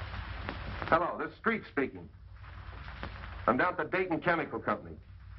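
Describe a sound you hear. A man speaks calmly into a telephone, close by.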